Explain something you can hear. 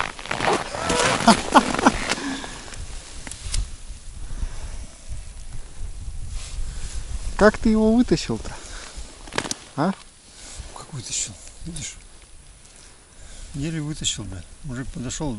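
A man talks close by, calmly, outdoors.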